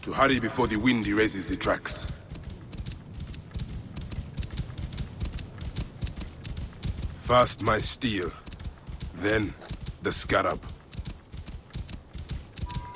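A horse gallops with soft, quick hoofbeats on sand.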